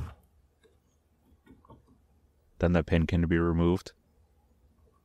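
Metal parts of an old gun action click softly under a hand.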